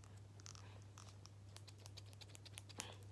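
Scissors snip several times.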